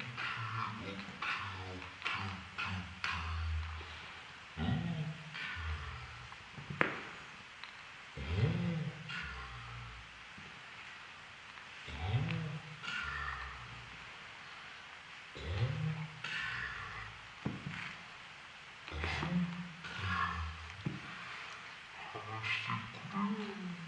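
A puppy growls and grumbles playfully.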